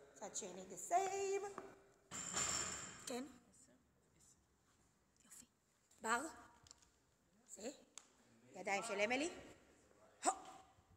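A young woman talks animatedly, close to the microphone.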